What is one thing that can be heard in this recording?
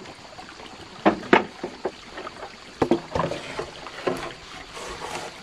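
A bamboo pole thumps and scrapes against wooden posts and dirt.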